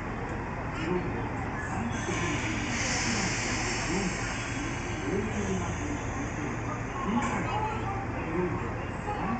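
A train's motor hums low and steady as the train rolls slowly closer.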